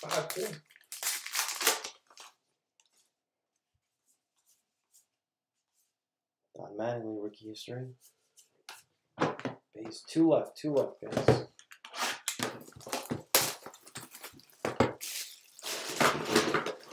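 Cardboard packaging crinkles and rustles in hands.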